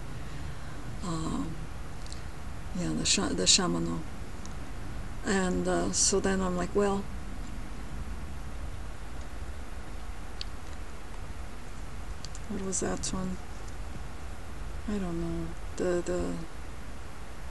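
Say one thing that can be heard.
A young woman talks softly and calmly close to a microphone, in short bursts with pauses.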